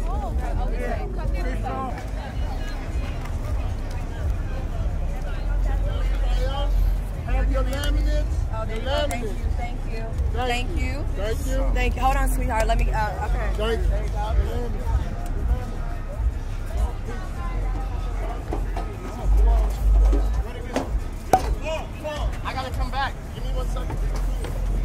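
Young men and women chat nearby.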